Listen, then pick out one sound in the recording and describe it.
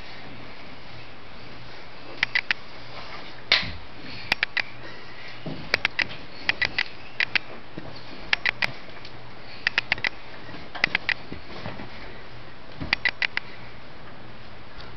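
A wooden crib creaks and knocks as a toddler moves about in it.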